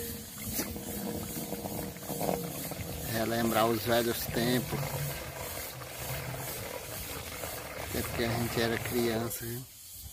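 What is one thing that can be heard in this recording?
Water pours and splashes into a plastic jug.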